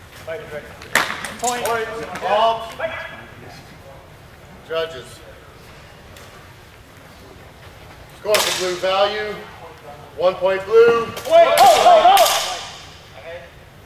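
A man shouts calls in a large echoing hall.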